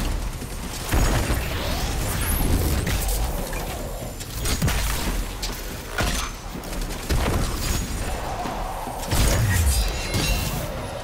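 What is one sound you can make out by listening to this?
Heavy explosions boom.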